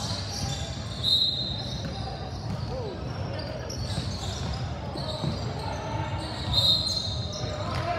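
A referee blows a sharp whistle in an echoing gym.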